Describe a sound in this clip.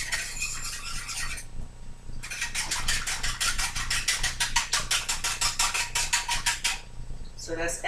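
A whisk beats quickly against a bowl.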